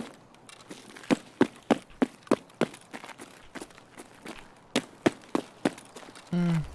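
Footsteps thud steadily on hard ground.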